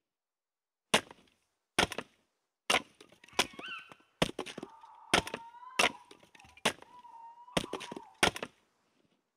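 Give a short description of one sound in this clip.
An axe chops wood with sharp, repeated knocks.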